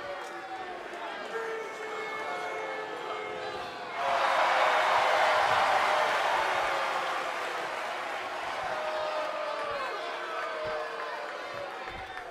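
A large crowd cheers and whistles in a big arena.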